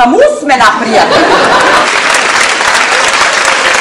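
An audience laughs and applauds.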